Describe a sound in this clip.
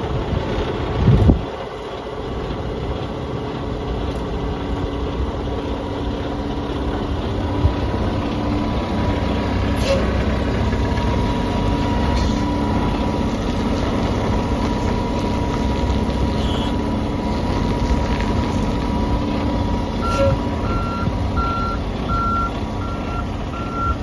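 A truck engine idles steadily nearby.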